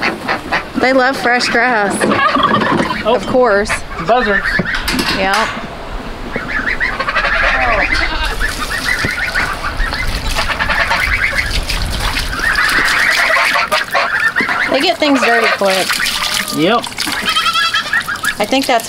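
Ducks quack.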